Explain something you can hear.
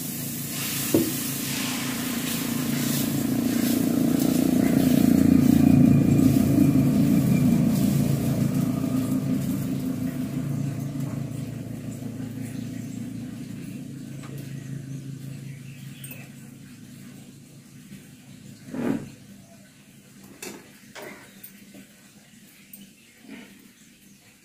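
A spoon scrapes and knocks against a pan.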